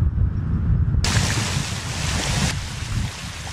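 Water gushes and hisses out of the ground.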